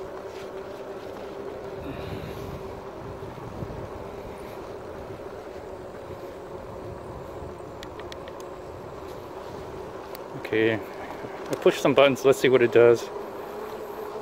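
An electric bike motor whines steadily.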